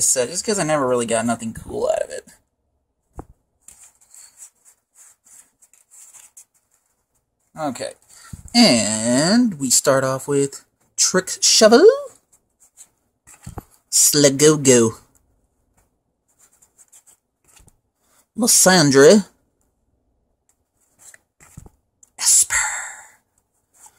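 Playing cards slide and rustle against each other in a hand.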